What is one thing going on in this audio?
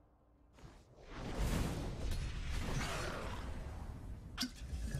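A fiery spell explodes with a loud whoosh and roar.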